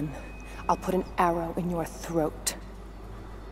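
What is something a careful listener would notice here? A woman speaks threateningly, close by.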